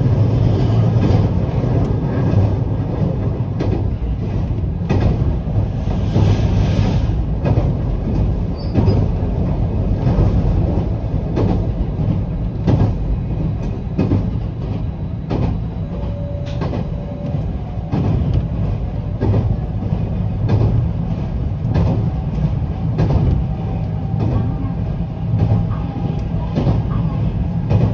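Train wheels click over rail joints at a regular pace.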